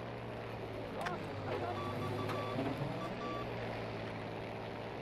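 Wind rushes past a diving plane.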